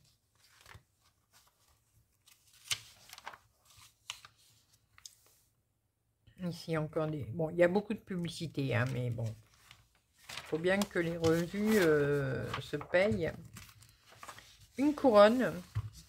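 Glossy magazine pages rustle and flap as they are turned.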